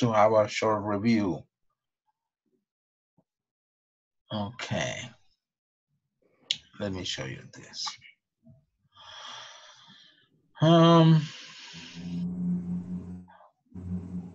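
A middle-aged man speaks calmly over an online call, in short phrases with pauses.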